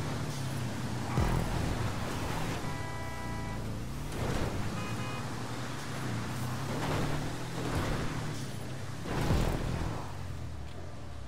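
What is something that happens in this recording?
An off-road buggy engine drones steadily, rising and falling in pitch.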